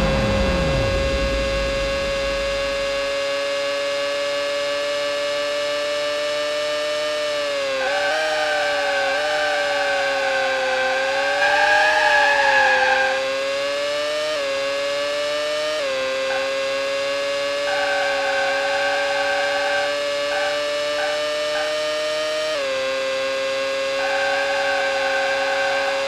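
A race car engine whines steadily at high speed.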